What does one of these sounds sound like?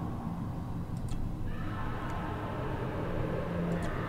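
A puzzle piece clicks softly into place.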